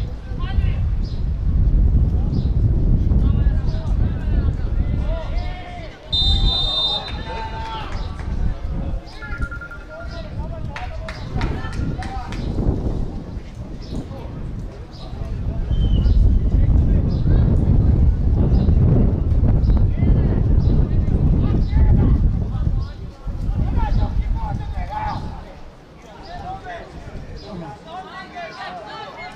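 Spectators nearby chat and call out in an open stand.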